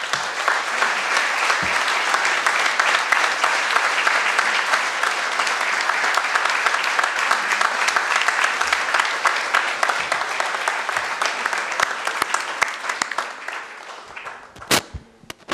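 A crowd applauds steadily in a large room, then fades out.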